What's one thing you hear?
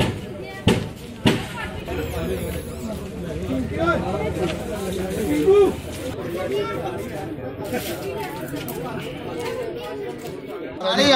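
Several men talk at once nearby outdoors.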